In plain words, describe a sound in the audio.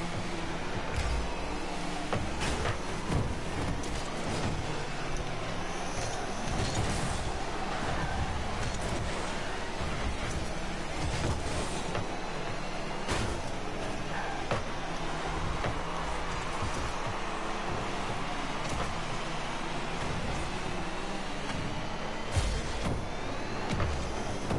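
A ball thumps against cars and walls now and then.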